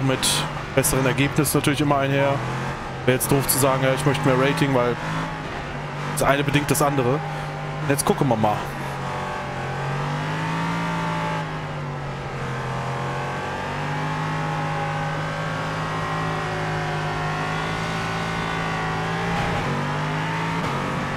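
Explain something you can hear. A racing car engine drones steadily.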